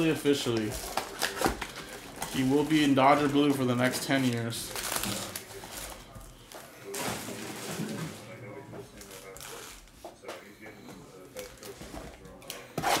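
Foil card packs rustle and crinkle in hands.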